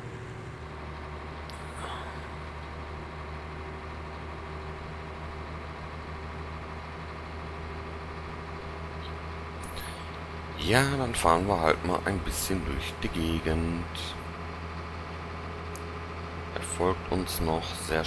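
A diesel semi-truck engine drones as it cruises along a road.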